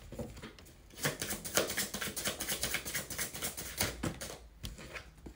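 Playing cards riffle and shuffle close by.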